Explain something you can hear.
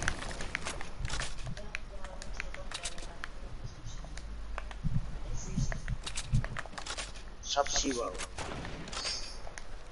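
Footsteps patter quickly across grass.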